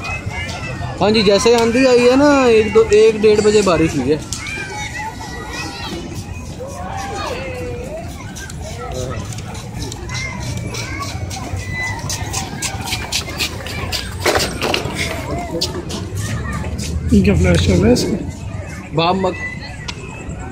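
A young child shouts loudly and shrilly nearby.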